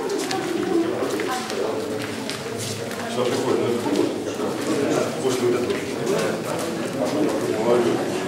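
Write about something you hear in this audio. A crowd of men and women chatter nearby in an echoing room.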